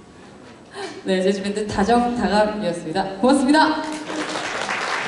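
A young woman speaks with animation through a microphone and loudspeakers.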